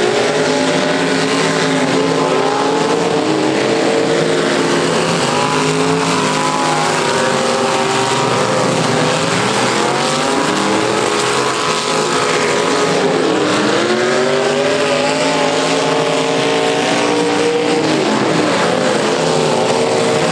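Car engines roar and rev loudly across a wide outdoor arena.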